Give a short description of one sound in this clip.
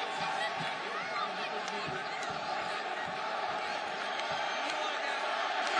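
A large crowd cheers and chants loudly.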